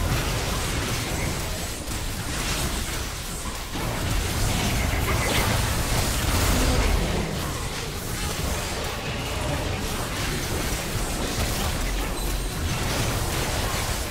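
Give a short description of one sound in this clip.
Magic blasts and weapon clashes crackle and boom in a hectic battle.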